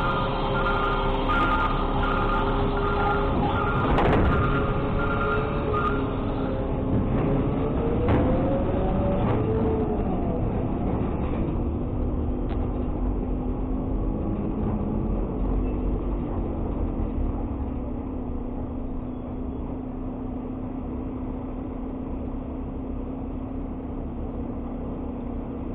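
A heavy truck engine runs and rumbles steadily.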